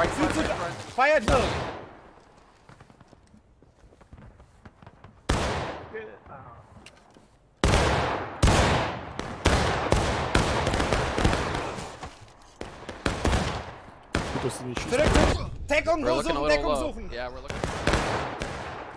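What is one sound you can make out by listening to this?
Rifles fire in loud cracking shots that echo outdoors.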